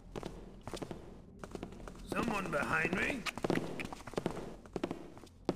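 Footsteps thud on stone at a steady walking pace.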